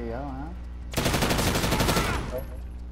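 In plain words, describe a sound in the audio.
An automatic gun fires a rapid, loud burst.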